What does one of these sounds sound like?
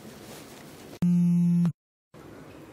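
A phone ringtone chimes briefly.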